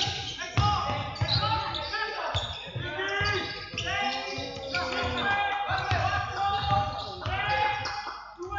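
A basketball bounces with dull thumps on the floor.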